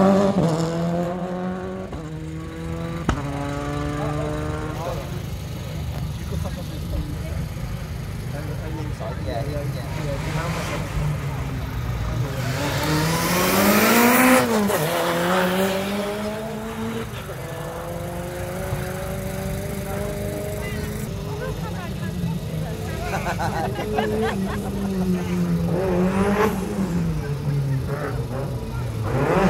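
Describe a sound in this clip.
A rally car engine revs hard through gear changes.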